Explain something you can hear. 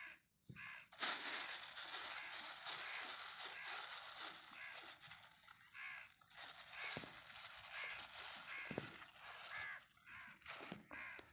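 A thin plastic bag crinkles and rustles as hands rummage in it.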